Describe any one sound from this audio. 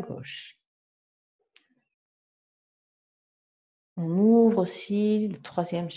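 A man speaks calmly and slowly close to a microphone.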